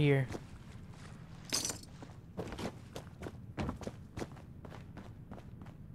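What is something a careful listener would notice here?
Footsteps fall steadily on a hard floor.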